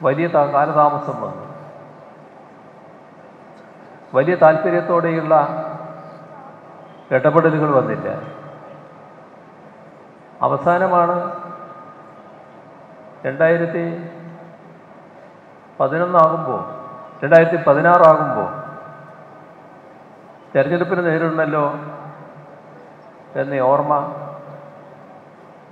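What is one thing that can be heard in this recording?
An elderly man speaks slowly and firmly into a microphone, in short phrases with pauses, his voice echoing through a loudspeaker.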